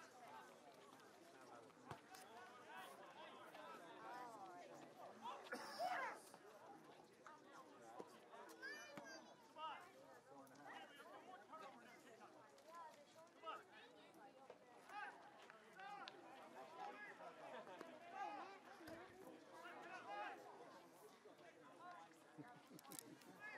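A crowd of spectators chatters and calls out close by, outdoors.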